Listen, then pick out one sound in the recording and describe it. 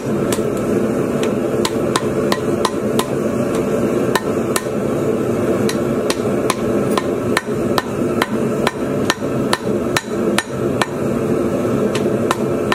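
A forge fire roars steadily.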